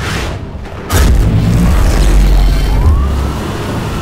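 A loud electric blast booms and crackles.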